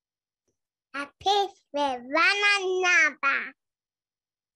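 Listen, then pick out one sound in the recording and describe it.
A woman reads out over an online call.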